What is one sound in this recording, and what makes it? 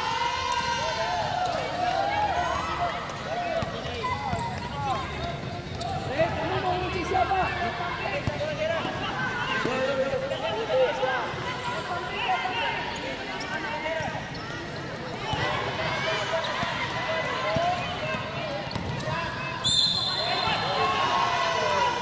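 Children call out and shout to each other.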